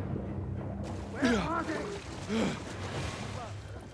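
Water splashes as someone swims through it.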